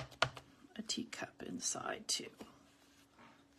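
Hands shift and tap a plastic block on a paper card.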